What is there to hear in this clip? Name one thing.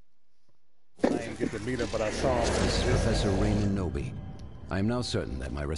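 Monsters growl and roar loudly.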